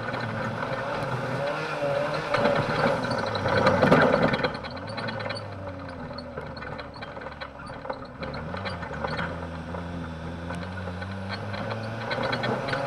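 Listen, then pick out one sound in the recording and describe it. A car engine roars close by, revving up and down.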